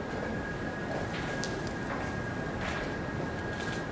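A chess piece is set down on a wooden board with a soft click.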